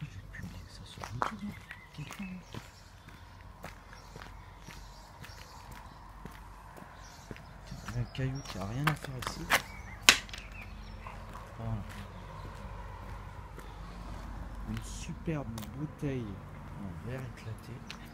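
Footsteps scuff slowly on a rough concrete path.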